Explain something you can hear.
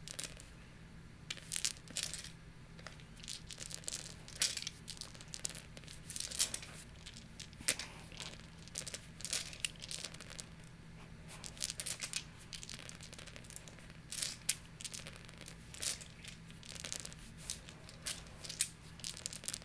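Dice rattle in a hand.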